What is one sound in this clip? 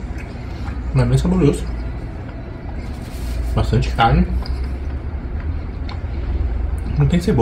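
A middle-aged man chews food with his mouth closed.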